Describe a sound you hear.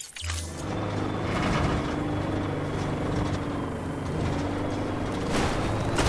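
Tyres crunch and rumble over rough, rocky ground.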